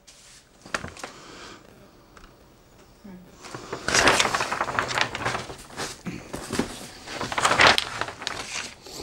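Wrapping paper crinkles and rustles as it is handled.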